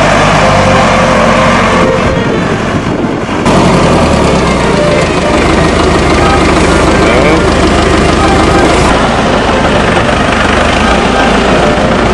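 A tractor engine rumbles and chugs loudly.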